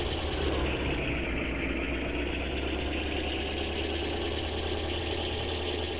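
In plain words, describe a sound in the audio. A jet plane roars overhead.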